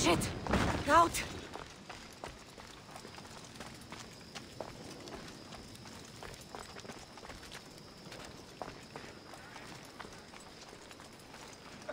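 Footsteps patter on stone as a figure runs.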